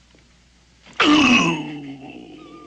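A man exclaims loudly close by.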